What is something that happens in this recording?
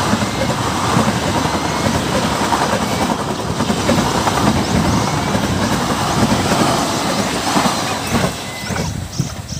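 A passing train rumbles loudly along the tracks.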